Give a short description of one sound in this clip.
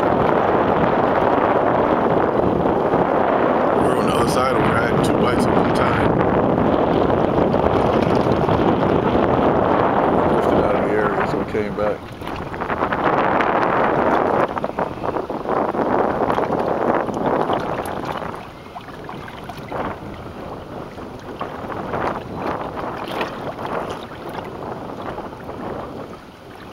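Wind blows hard across open water.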